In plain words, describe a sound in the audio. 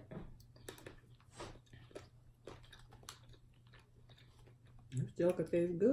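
Two young women chew and smack their lips close by.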